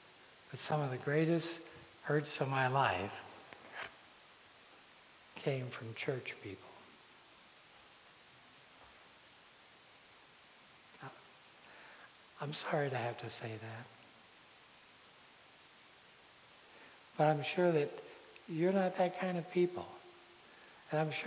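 A man speaks with animation in a large echoing hall, heard from a distance, pausing between phrases.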